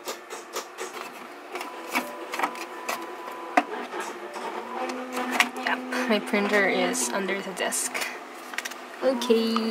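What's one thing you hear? Paper rustles and taps as sheets are loaded into a printer.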